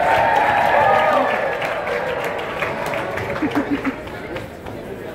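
A large crowd of men and women chatters and cheers in a big echoing hall.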